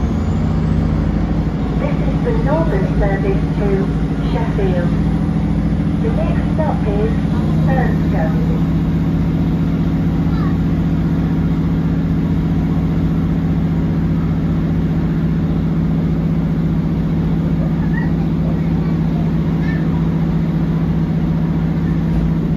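A train hums and rumbles steadily while moving along the track.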